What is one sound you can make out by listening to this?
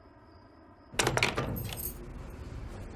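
A telephone handset clatters as it is handled.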